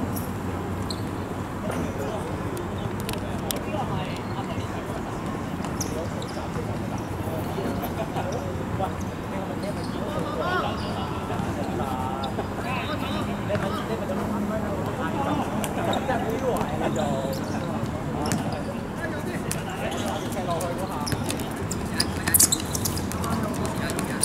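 Young men shout and call to each other during a football game outdoors.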